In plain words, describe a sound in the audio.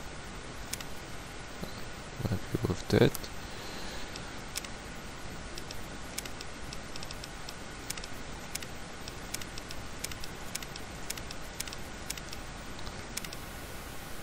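Soft menu clicks tick as options change.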